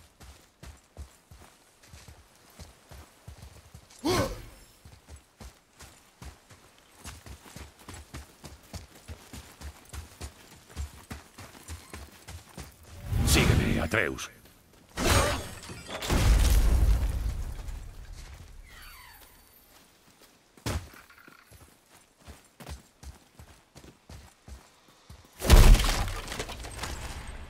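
Heavy footsteps crunch on snowy ground.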